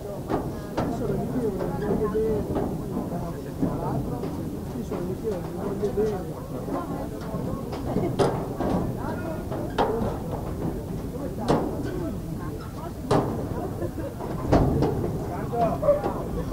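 Rugby players shout to each other across an open field.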